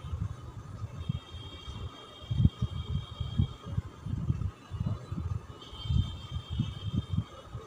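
A marker squeaks on a whiteboard in short strokes.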